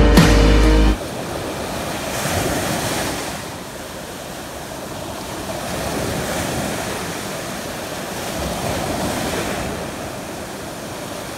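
Waves break and wash onto the shore in surging swells.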